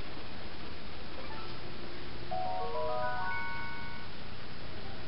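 A short, cheerful video game jingle plays through a television speaker.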